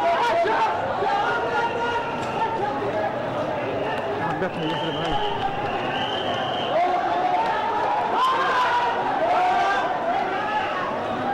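A crowd of men shouts and yells loudly outdoors.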